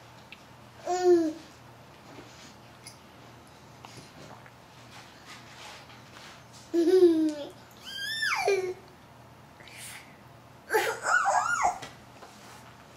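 A baby squeals and babbles loudly close by, in short bursts.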